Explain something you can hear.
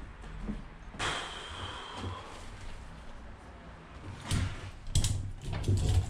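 A metal cage trolley rattles as it is pulled.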